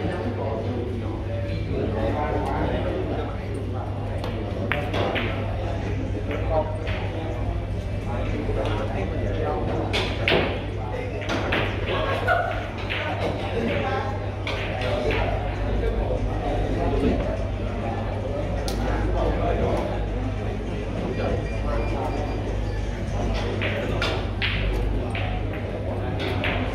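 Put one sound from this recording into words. Men murmur and talk quietly in the background of an indoor hall.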